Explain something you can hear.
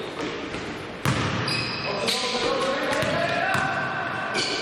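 A basketball thumps on the floor.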